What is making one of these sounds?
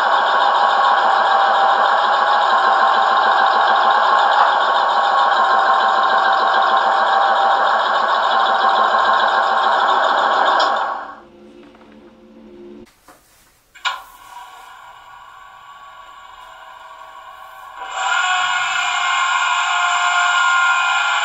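A model diesel locomotive's sound unit plays a running diesel engine through a small loudspeaker.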